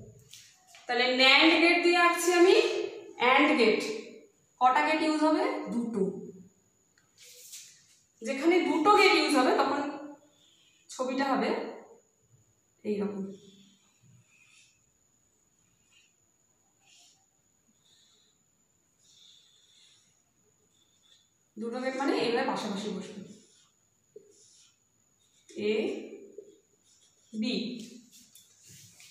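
A woman speaks calmly close by, explaining in pauses.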